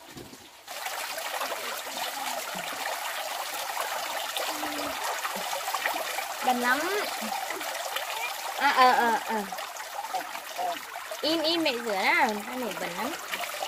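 Hands splash and rub in water.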